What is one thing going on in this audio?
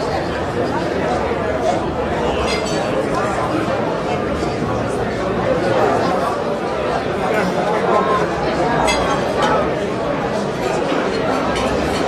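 A large crowd of men and women chatter loudly in an echoing hall.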